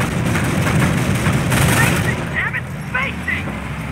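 An explosion booms and rumbles, then slowly dies away.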